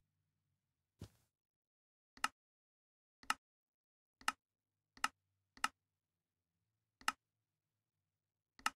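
A button clicks sharply several times.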